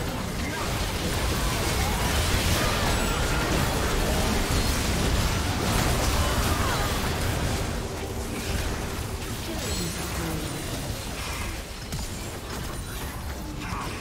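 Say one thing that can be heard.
Game spell effects crash and blast in a busy fight.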